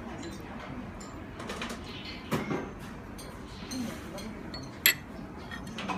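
A spoon scrapes and taps against a small dish.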